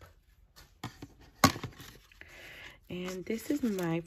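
Paper and plastic wrapping rustle and crinkle close by.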